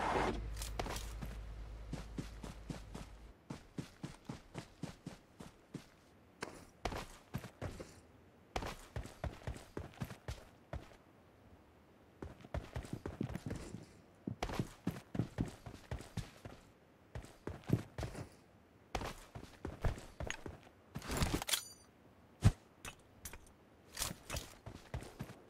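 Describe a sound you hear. Footsteps crunch quickly on dirt and grass.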